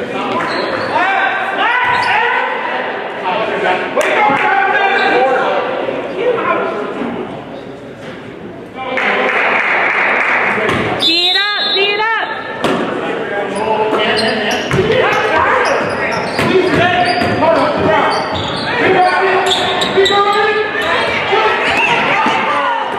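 A crowd of spectators talks and shouts in a large echoing gym.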